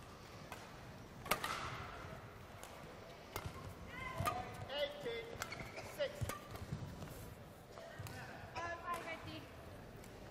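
A badminton racket strikes a shuttlecock with sharp pops.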